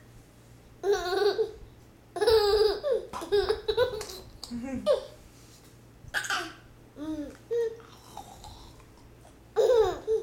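A young woman makes playful sounds with her mouth, close by.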